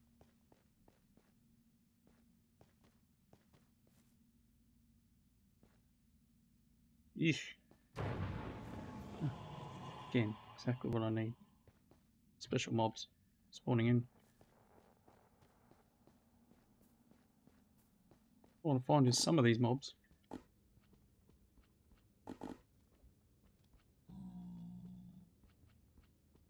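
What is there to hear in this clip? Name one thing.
Footsteps tread softly over the ground.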